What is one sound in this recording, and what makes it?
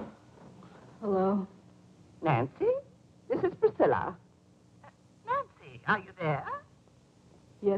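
A man talks on the phone.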